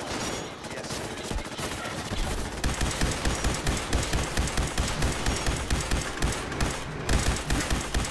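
Robots explode with sharp blasts.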